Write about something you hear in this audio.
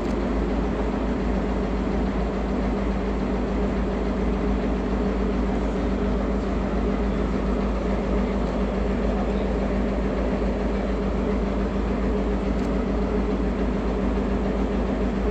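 A diesel locomotive engine idles with a steady, deep rumbling hum.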